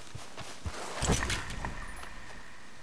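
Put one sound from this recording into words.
A gunshot cracks and echoes.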